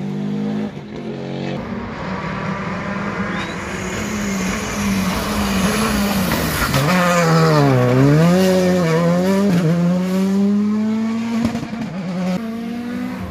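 A rally car engine revs hard, its pitch rising and falling as the car races past.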